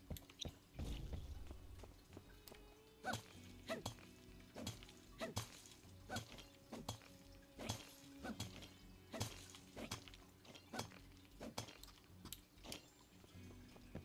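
A tool strikes rock in sharp repeated clinks.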